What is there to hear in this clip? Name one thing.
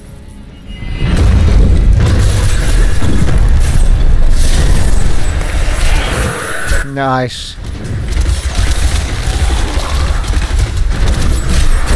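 Magic blasts crackle and boom in a loud fight.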